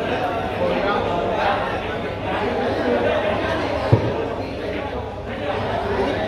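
Men murmur and chat in the background.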